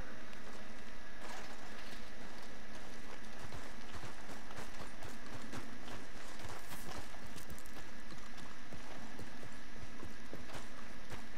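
Footsteps crunch on rocky ground in an echoing cave.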